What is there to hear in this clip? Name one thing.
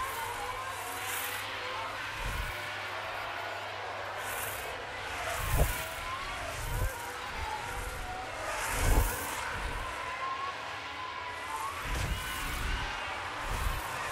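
Racing car engines whine at high revs and shift pitch as the cars race past.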